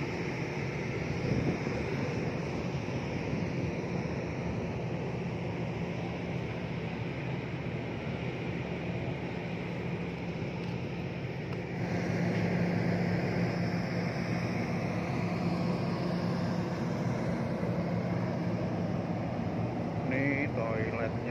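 A ship's engine hums low and steady throughout.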